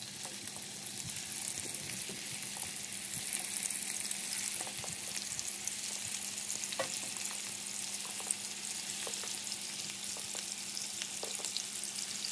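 Oil sizzles and spatters steadily in a hot pan.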